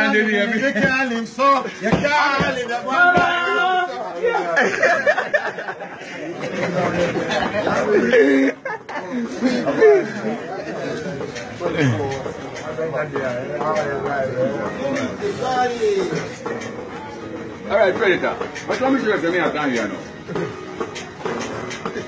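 Several men talk loudly over one another, close by.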